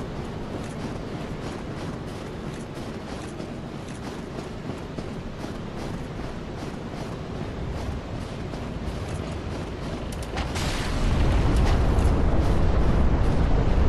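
A cold wind blows steadily outdoors.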